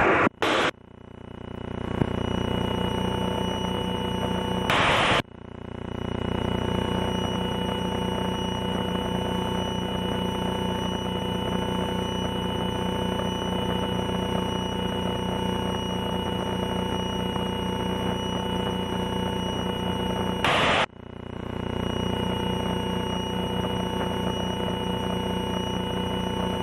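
A propeller engine drones steadily and loudly.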